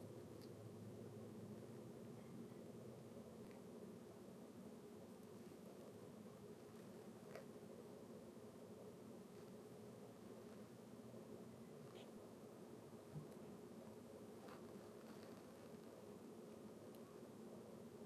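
Small plastic toy figures click and tap as hands handle them.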